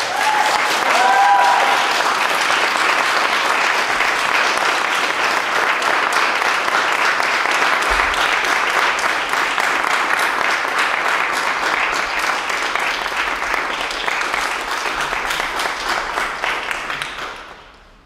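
An audience applauds steadily, then the applause fades out.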